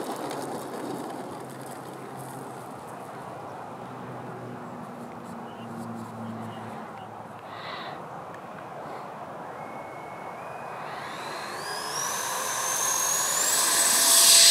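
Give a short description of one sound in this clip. Outdoors, wind rumbles across the microphone.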